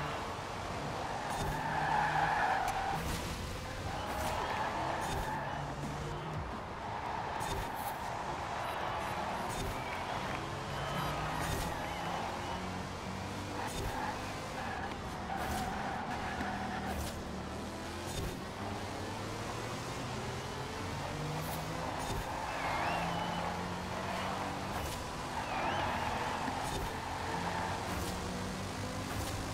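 A racing car engine roars and revs up and down through gear changes.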